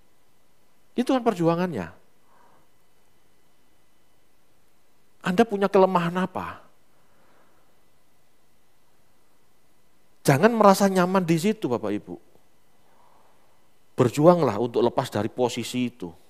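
A man speaks calmly through a headset microphone, in short phrases with pauses.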